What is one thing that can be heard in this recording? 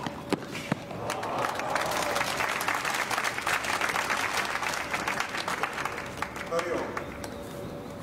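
A crowd applauds and cheers nearby.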